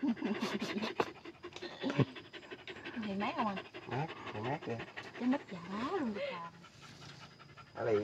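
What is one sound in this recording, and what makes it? A dog pants softly.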